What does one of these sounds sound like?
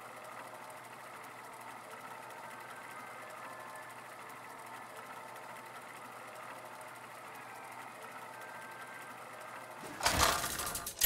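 Soft game music plays steadily.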